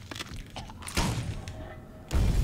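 A gunshot cracks and echoes.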